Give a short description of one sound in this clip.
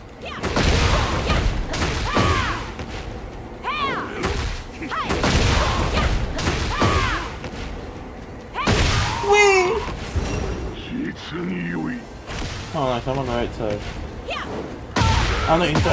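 Punches and kicks land with heavy thuds and whooshes.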